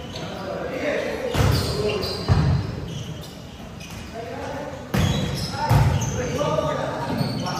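Young men call out and shout during play in a large echoing hall.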